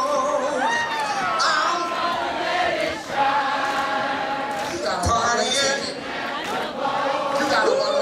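Pop music with a singing voice plays loudly through loudspeakers in a large hall.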